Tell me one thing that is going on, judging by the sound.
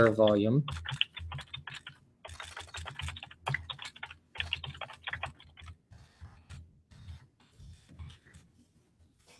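Keys clatter quickly on a computer keyboard.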